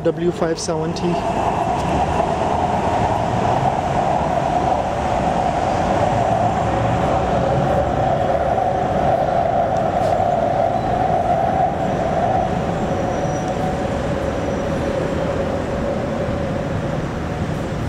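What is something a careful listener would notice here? An elevated train rumbles past below, then fades away.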